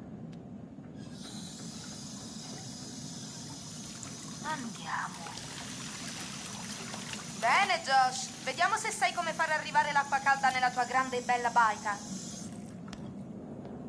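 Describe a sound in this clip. Water runs from a tap with a steady hiss.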